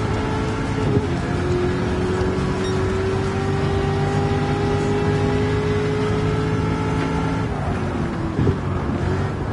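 A car gearbox clunks briefly as gears shift.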